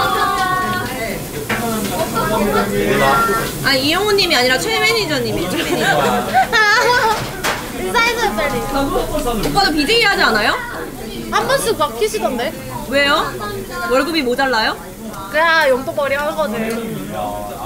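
Chopsticks clink against dishes.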